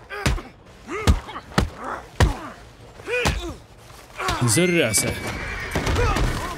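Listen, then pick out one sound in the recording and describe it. Punches thud against a body.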